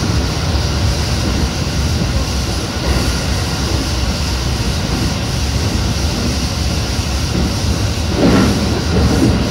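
An electric commuter train rumbles through a tunnel.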